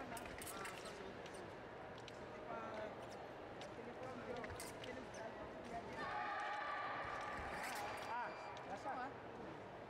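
Fencing blades clink and clash together.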